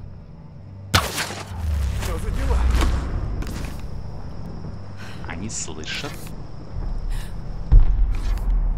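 An arrow whips off a bow with a sharp thwack.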